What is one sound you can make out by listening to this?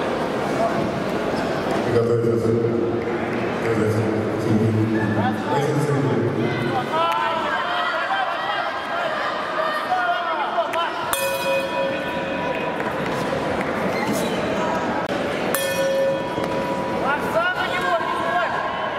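Spectators shout from across a large echoing hall.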